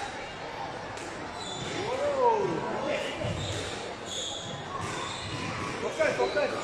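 A squash ball smacks against the walls of an echoing court.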